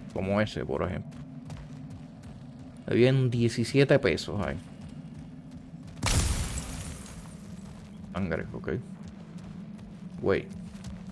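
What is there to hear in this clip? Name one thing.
A man talks with animation into a close microphone, in short bursts.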